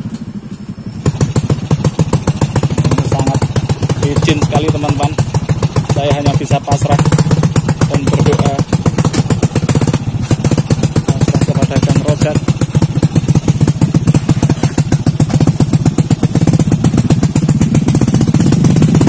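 A motorbike engine chugs loudly up close.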